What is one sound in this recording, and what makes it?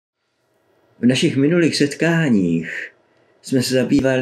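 An elderly man speaks calmly and warmly, close to a microphone.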